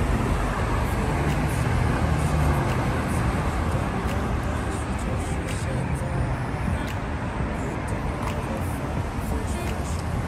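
Car traffic hums along a nearby road.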